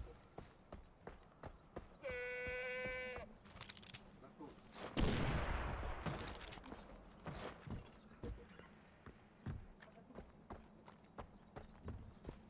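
Footsteps crunch steadily over grass and gravel.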